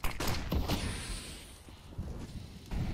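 A smoke grenade hisses as it spreads.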